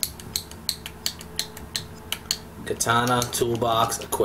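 Menu selection clicks tick rapidly.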